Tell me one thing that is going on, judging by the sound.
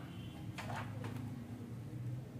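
Plastic printer parts click and rattle under a man's hands.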